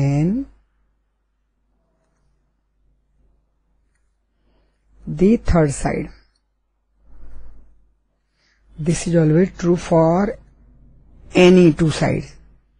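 A middle-aged woman speaks calmly into a microphone, in short phrases with pauses.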